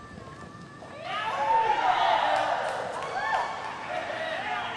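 A crowd whoops and cheers loudly in a large arena.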